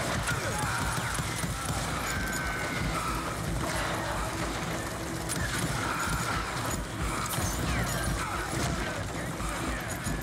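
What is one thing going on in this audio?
Pistols fire loud, sharp shots in quick bursts.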